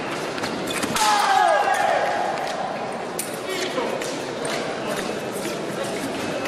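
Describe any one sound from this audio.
Fencing blades clash and clink.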